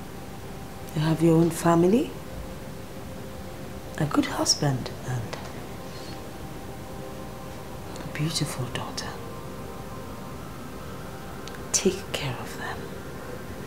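A middle-aged woman speaks in short, tense bursts close by.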